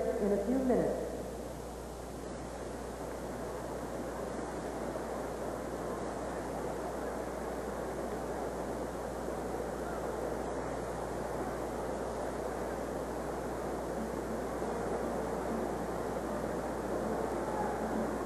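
A large crowd applauds in an arena.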